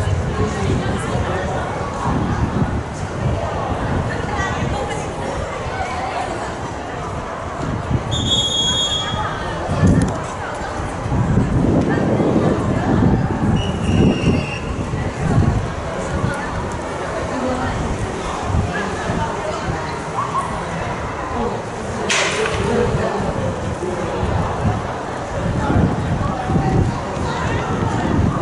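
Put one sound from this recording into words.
A crowd of people chatters outdoors.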